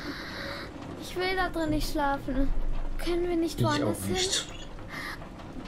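A young girl speaks anxiously and quietly.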